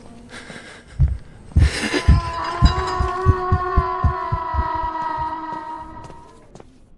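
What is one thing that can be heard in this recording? Quick footsteps thud up a staircase.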